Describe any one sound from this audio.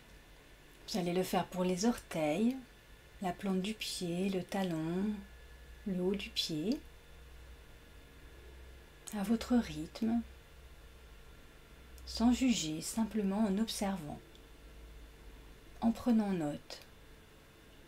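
A young woman speaks calmly and softly into a nearby microphone, with pauses.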